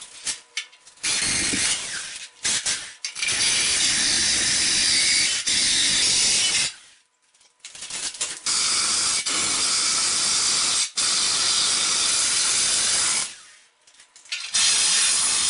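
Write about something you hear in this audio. A power drill whines loudly as it grinds through tile in long bursts.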